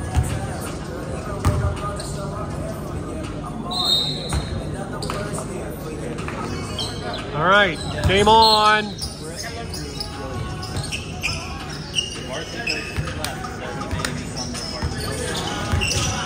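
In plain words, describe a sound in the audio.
A crowd of people chatter in a large echoing gym.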